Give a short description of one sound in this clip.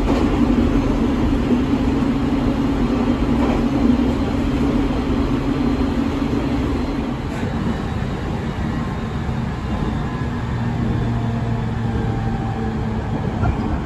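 A train rumbles steadily along the track, heard from inside the carriage.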